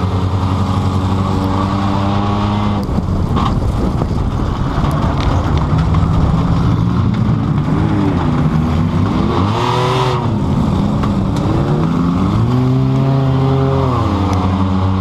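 Metal rattles and knocks inside a car as it bumps over rough ground.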